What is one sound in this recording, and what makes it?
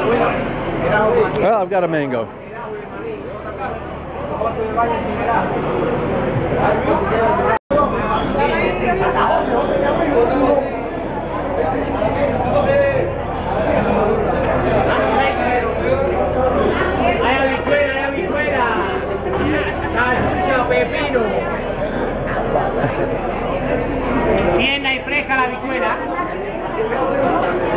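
A crowd of people chatter all around.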